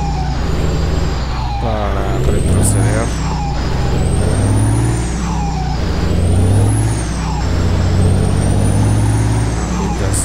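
A heavy bus engine rumbles steadily, rising and falling slightly.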